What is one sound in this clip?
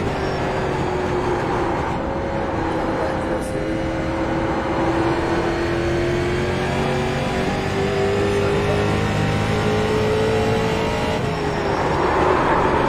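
A race car engine roars steadily, its pitch shifting slightly as it accelerates and eases off.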